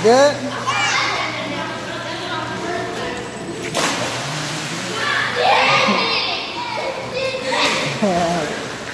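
Water splashes as children move about.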